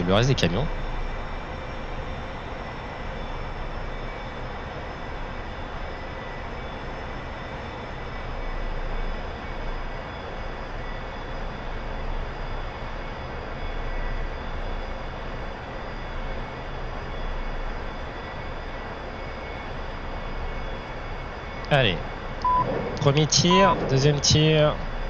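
A jet engine roars steadily from inside a cockpit.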